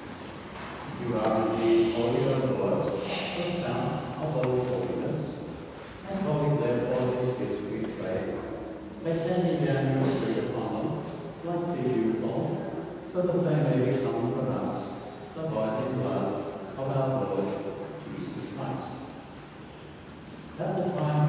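A man speaks slowly over loudspeakers in a large echoing hall.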